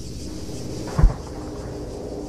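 A loud explosion bursts nearby.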